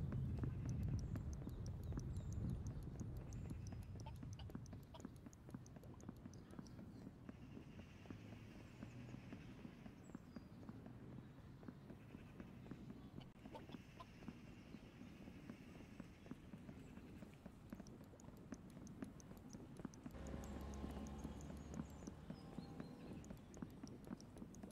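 A young man talks close to a microphone, with animation.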